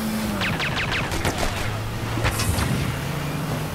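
Guns fire in quick bursts.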